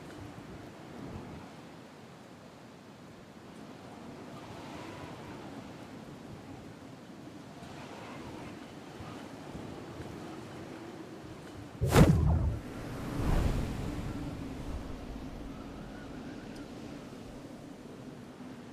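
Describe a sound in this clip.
Wind rushes steadily during a fall through the air.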